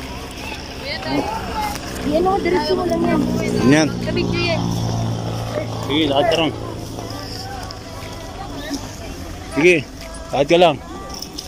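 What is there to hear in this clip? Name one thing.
Young people chat and call out to each other outdoors.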